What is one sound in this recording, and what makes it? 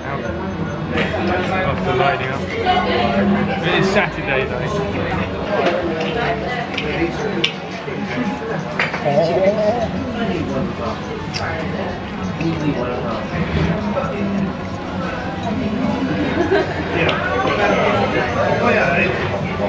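Voices chatter in the background of a busy room.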